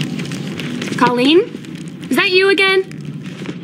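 A young woman speaks with surprise, heard close.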